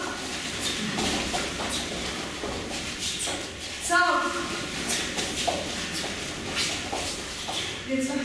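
Kicks swish and thump in an echoing room.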